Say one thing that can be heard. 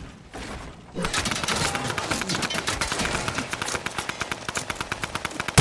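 Wooden building pieces snap into place in quick succession.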